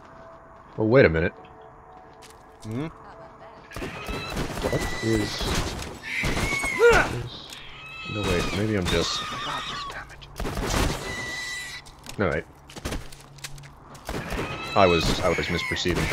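A pistol fires a string of sharp shots.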